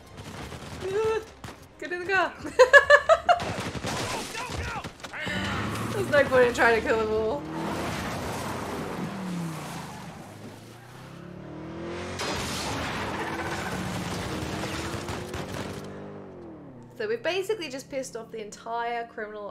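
A young woman talks with animation into a headset microphone.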